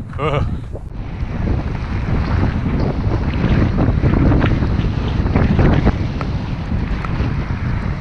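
Footsteps crunch quickly on packed snow.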